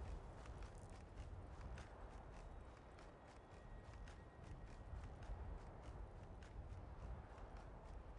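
Footsteps crunch quickly on a stone path.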